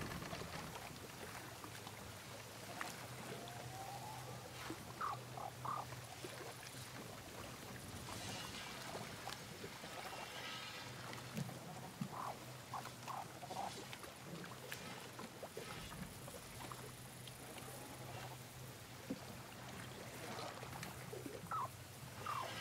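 Wind blows steadily over open water.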